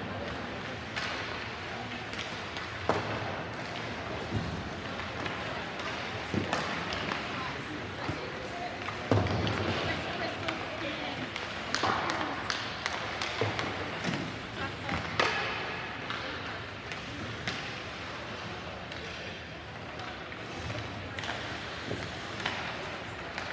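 Hockey pucks knock sharply against sticks and boards.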